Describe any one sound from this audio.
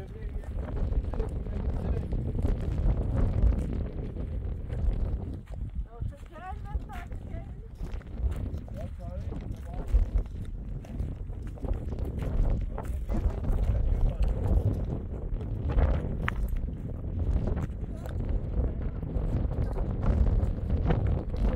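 Footsteps crunch on a stony dirt path.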